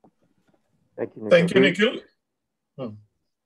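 A second man speaks briefly over an online call.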